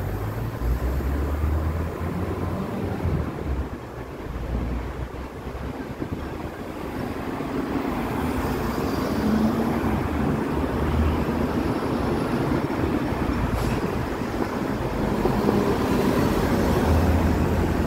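Traffic hums steadily along a city street outdoors.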